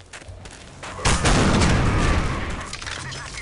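A grenade explosion booms loudly.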